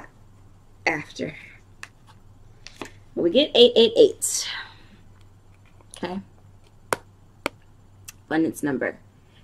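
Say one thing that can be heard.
A playing card is laid softly onto a cloth surface.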